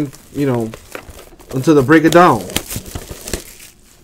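Plastic wrapping crinkles and tears in someone's hands.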